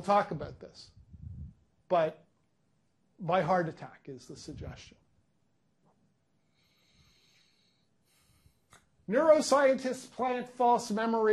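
A middle-aged man speaks with animation through a microphone, pausing between phrases.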